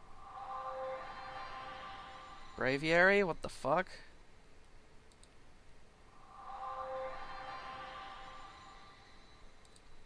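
An electronic chime with a shimmering tone rings out twice.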